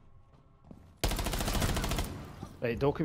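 A submachine gun fires in short bursts.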